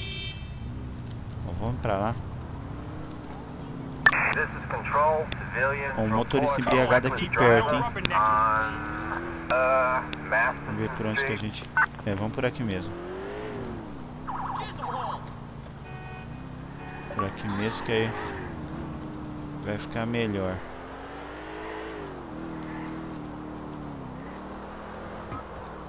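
A car engine hums and revs as the car drives along.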